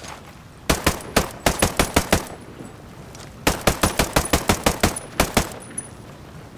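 Rifle shots fire in rapid bursts.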